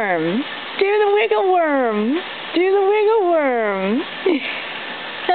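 A dog whines and yowls in rising and falling cries close by.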